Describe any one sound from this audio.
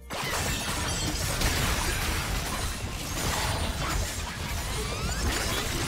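Magic blasts burst and zap in a game fight.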